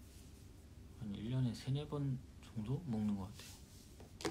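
A young man speaks softly and close by.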